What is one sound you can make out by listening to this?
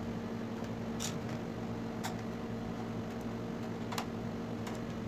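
A small screwdriver clicks and taps against metal.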